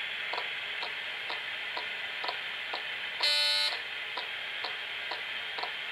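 A mobile phone rings with a quick, repeating electronic tone.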